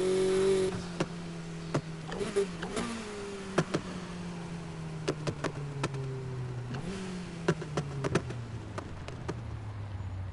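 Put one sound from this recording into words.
An exhaust pops and crackles sharply.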